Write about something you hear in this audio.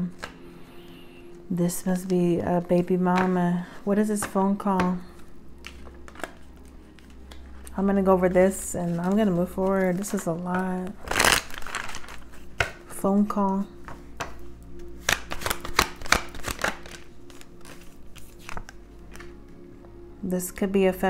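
Playing cards rustle and flick in someone's hands.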